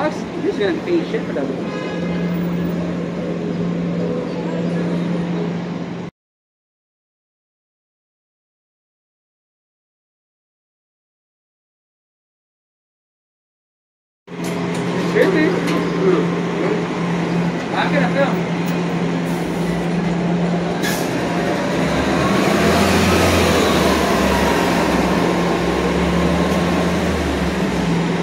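Traffic hums along a busy city street outdoors.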